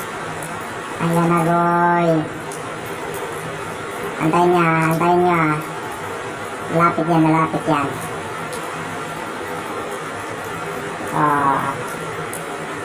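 A cat meows loudly.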